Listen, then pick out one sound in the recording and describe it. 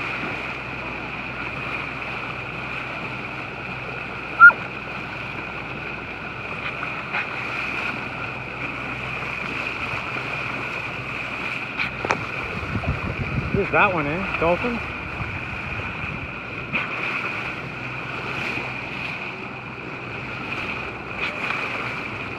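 Water rushes steadily along a boat's hull.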